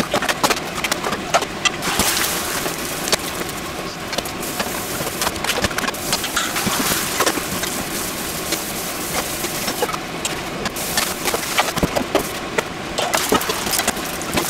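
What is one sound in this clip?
Eggs sizzle and crackle in a hot frying pan.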